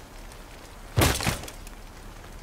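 A rifle fires a loud shot nearby.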